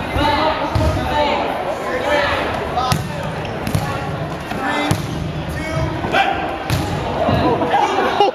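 Young people shout and cheer loudly in an echoing gym.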